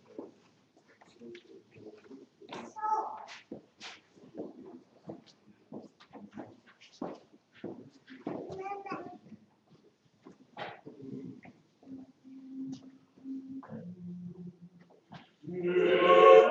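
A man speaks and chants quietly at a distance.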